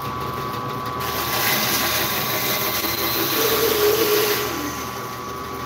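A band saw blade cuts through a block of wood with a rising whine.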